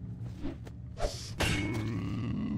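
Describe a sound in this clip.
An axe swings and strikes with a heavy thud.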